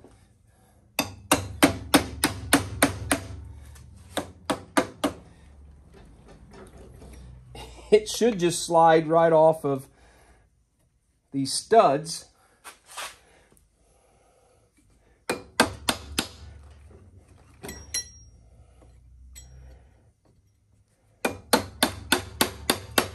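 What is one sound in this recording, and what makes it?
A hammer strikes metal in rapid blows.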